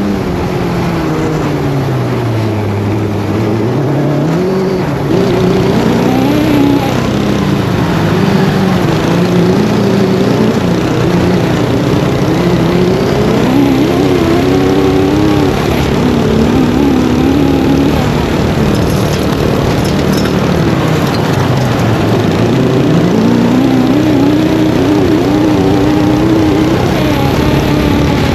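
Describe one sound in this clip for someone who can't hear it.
Tyres rumble and crunch over dirt and gravel.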